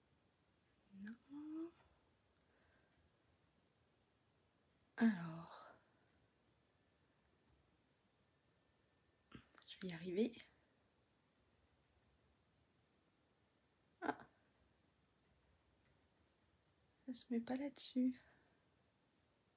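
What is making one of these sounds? A woman speaks calmly in short bursts close by, with pauses between.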